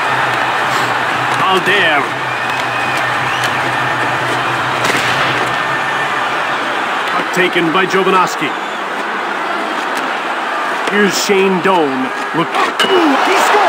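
A large crowd murmurs and roars steadily in an echoing arena.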